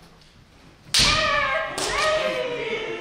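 A weapon strikes protective armour with a sharp crack.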